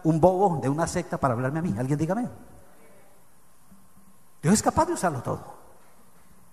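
A middle-aged man preaches forcefully into a microphone in a large echoing room.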